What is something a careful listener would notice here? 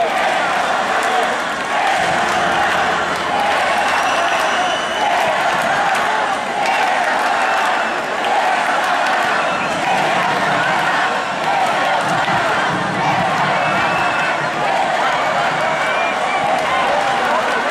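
A crowd cheers and shouts loudly in a large open space.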